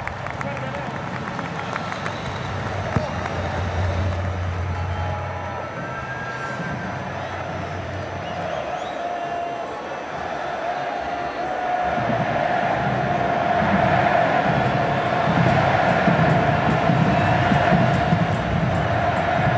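A large stadium crowd cheers and chants, echoing around the stands.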